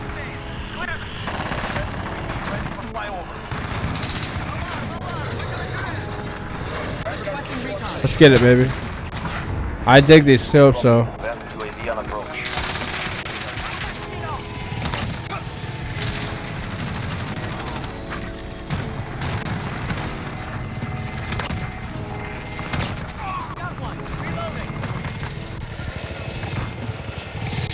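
Rifle shots crack in a video game.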